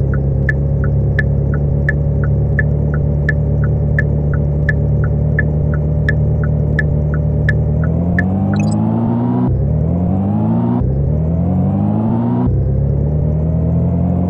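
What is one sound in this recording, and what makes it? A car engine idles steadily, then revs up through several gear changes.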